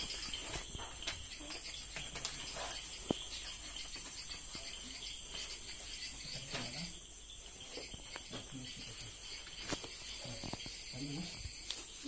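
Paper rustles and crinkles softly as pages are handled.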